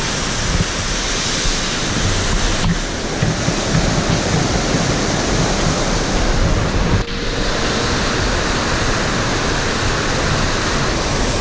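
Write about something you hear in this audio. A waterfall roars and splashes close by, loud and steady.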